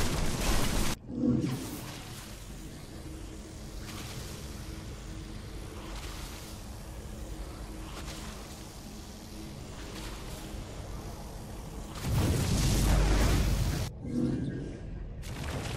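A short electronic chime sounds as a menu option is selected.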